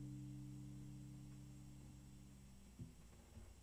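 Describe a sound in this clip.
An acoustic guitar chord rings close by and slowly fades.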